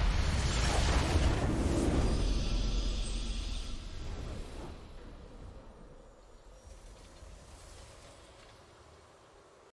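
A triumphant victory fanfare swells loudly and slowly fades away.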